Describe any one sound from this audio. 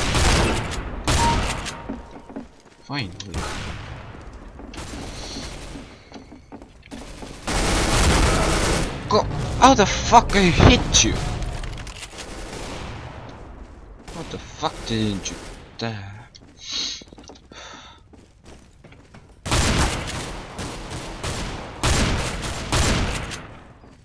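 Shotgun blasts boom loudly several times.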